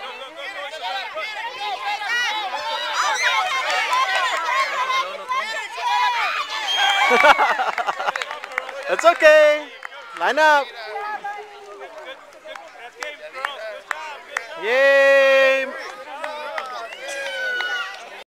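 Young children shout and squeal excitedly outdoors.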